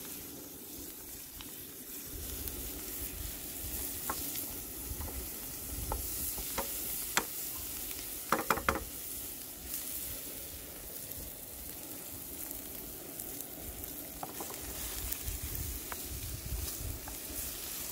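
Onions sizzle in a hot frying pan.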